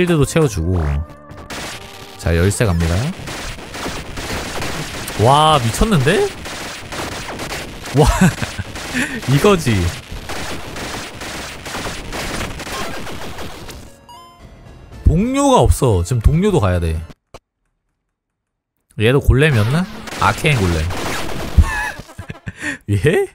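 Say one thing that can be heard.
Electronic game music plays.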